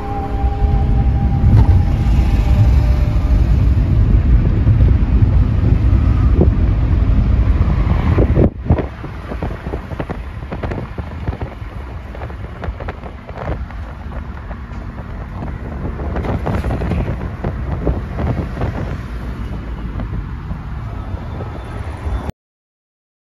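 A car engine hums and tyres rumble on the road from inside a moving car.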